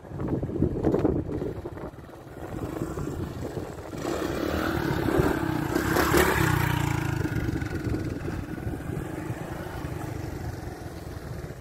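A motorcycle engine revs loudly nearby.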